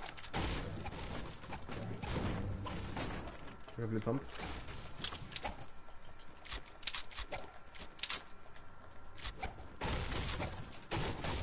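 A pickaxe strikes objects with sharp thuds in a video game.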